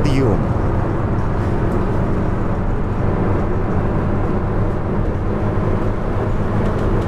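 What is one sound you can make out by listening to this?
A diesel bus engine drones while cruising.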